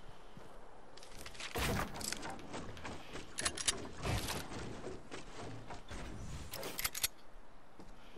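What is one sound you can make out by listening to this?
Wooden planks clatter and knock in quick bursts as structures are built.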